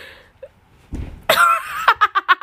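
A young man's body thumps down onto the floor.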